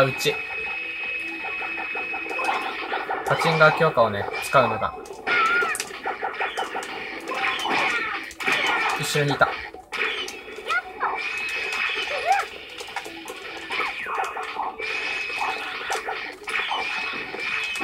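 Game sound effects burst and whoosh.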